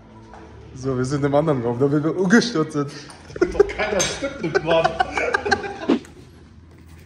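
A young man talks and laughs close by, with animation.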